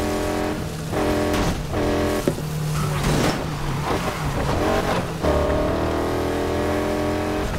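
A V8 muscle car engine revs hard, rising in pitch and dropping at each gear change.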